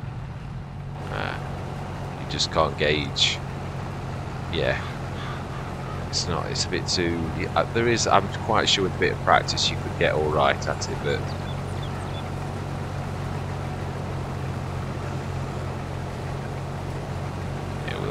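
Grain pours into a trailer with a steady rush.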